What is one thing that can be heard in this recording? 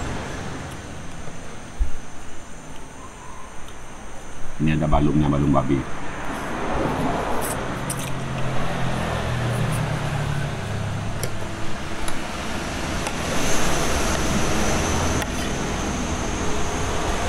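A spoon scrapes and clinks on a plate.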